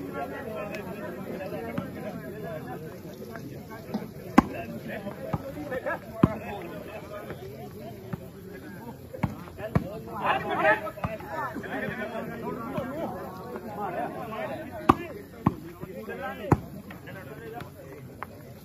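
Young men shout and call out with excitement outdoors.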